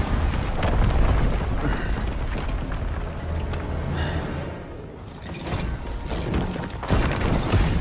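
Heavy stone rumbles and crashes as rubble collapses.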